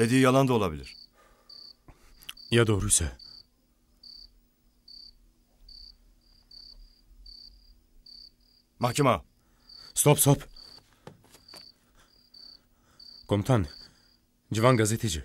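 A man speaks in short, tense phrases close by.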